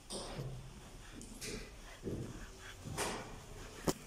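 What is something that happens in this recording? Footsteps thud on hollow wooden stairs.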